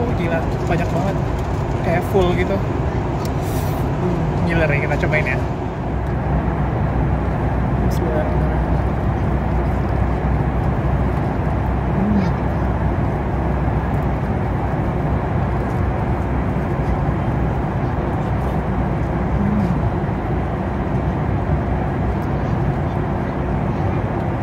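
A steady, low engine hum drones throughout.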